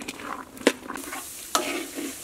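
A wood fire crackles under a wok.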